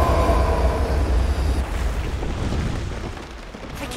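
A deep, roaring rumble of swirling sand fills the air, then slowly fades.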